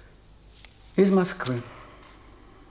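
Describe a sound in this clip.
A middle-aged man speaks a short phrase up close.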